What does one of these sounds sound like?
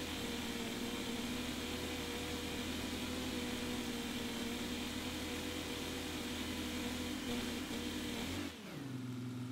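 A tractor engine drones under load.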